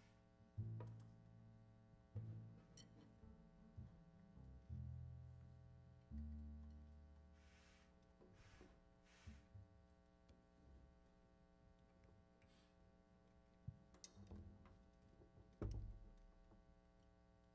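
A double bass plays deep plucked notes.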